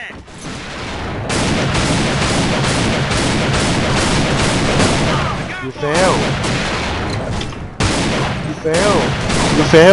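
Sniper rifle shots crack one after another.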